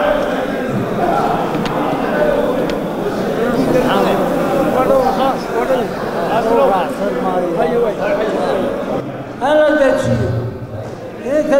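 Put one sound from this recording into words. Many men talk and call out at once in a large echoing hall.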